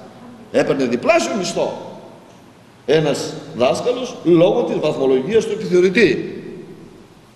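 An elderly man speaks with animation through a microphone in a slightly echoing room.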